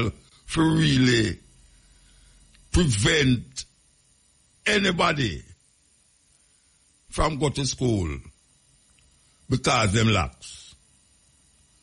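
A man speaks into a close microphone in short, animated bursts with pauses between.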